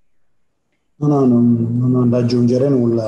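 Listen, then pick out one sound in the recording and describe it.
A man speaks over an online call.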